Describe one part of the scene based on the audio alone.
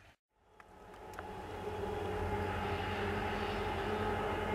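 A diesel locomotive engine drones steadily at a distance.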